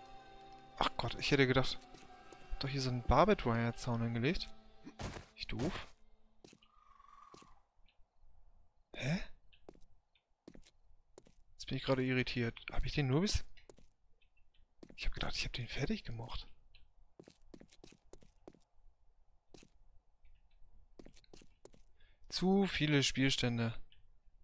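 Footsteps tread on hard pavement.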